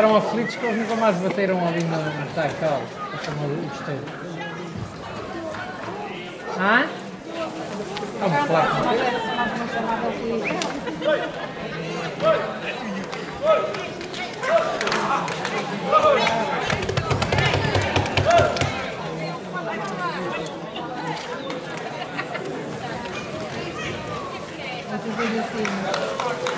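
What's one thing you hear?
A crowd of men and women shouts and calls out excitedly outdoors.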